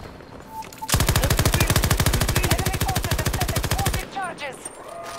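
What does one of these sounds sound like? A machine gun fires a long, rapid burst at close range.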